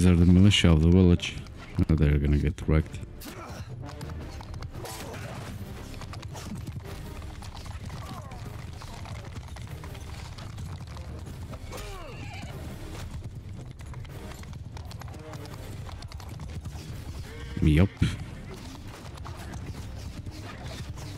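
A horse gallops with heavy hoofbeats on dry ground.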